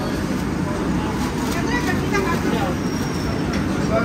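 A paper bag rustles as food is packed into it.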